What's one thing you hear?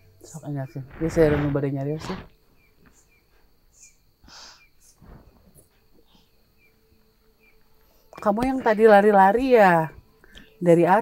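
A young woman speaks close by in a shaky, upset voice.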